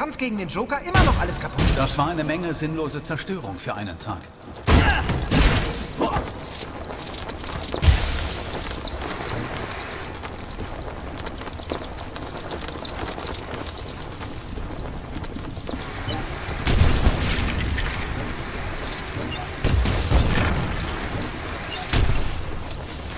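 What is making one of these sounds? Plastic pieces crash and clatter as objects smash apart.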